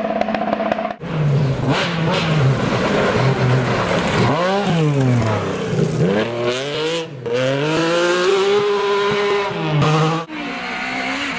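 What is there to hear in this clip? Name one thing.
A rally car engine revs up and down sharply, again and again.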